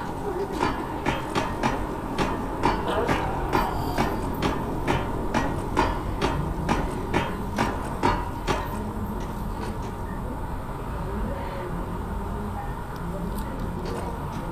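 Hands and feet clang on a metal ladder.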